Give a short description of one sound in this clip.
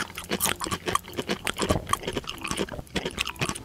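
Plastic toy food pieces click and clatter against a plastic tray.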